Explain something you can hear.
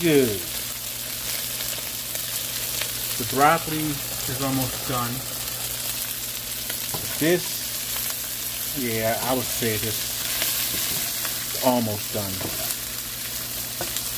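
Shrimp sizzle steadily in a hot frying pan.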